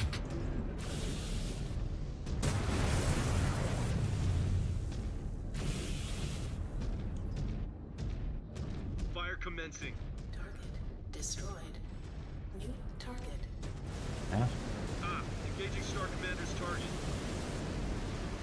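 Laser weapons fire in loud roaring bursts.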